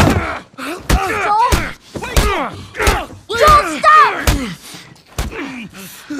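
Heavy punches thud one after another in a struggle.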